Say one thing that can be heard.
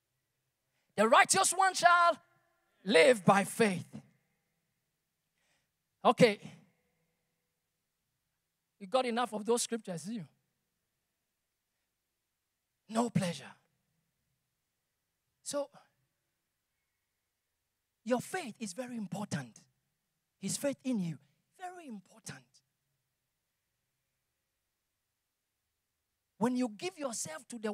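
A man speaks with animation into a microphone, in short bursts with pauses, in a large echoing hall.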